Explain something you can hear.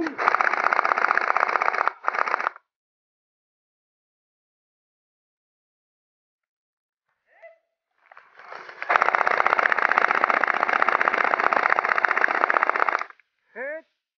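An airsoft gun fires rapid bursts close by.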